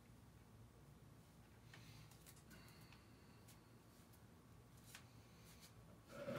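Bare feet step softly on a hard floor.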